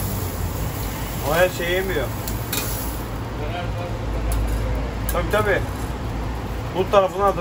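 A metal spatula scrapes and taps on a hot grill.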